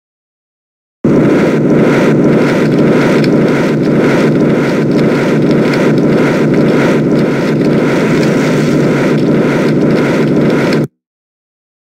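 A flamethrower roars steadily.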